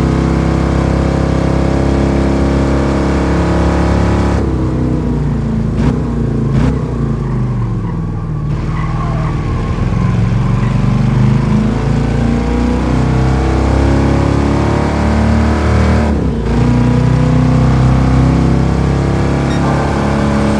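A powerful car engine roars at high revs, dropping in pitch as it slows for a corner and climbing again as it speeds up.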